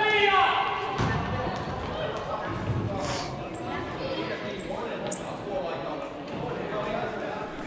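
Plastic sticks clack against a ball and each other in a large echoing hall.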